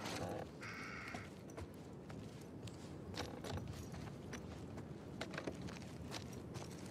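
Soft footsteps creep across a creaky wooden floor.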